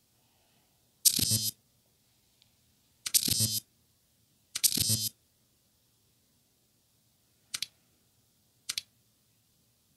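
Short electronic whooshes sound as menus open and close.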